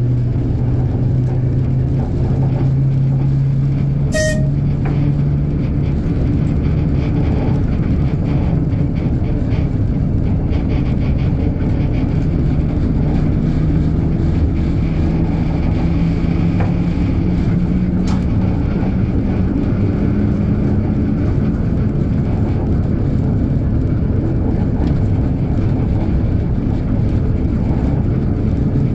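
A diesel locomotive engine rumbles steadily up close.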